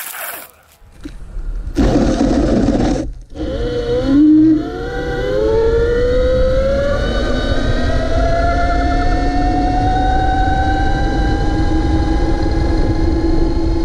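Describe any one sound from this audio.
Scooter tyres rumble on asphalt.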